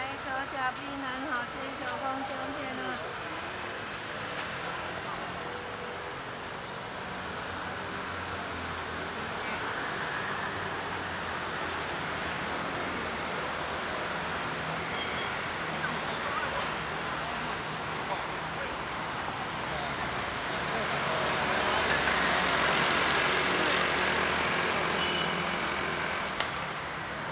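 City traffic hums in the distance.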